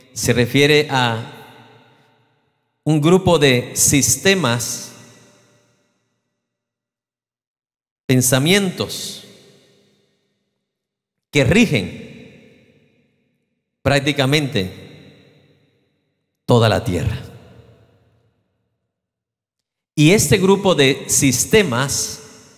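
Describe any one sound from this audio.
A middle-aged man speaks slowly and earnestly through a microphone in a large echoing hall, pausing often.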